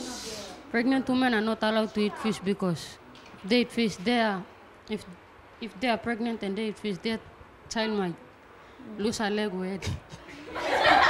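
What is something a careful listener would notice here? A boy speaks haltingly into a microphone.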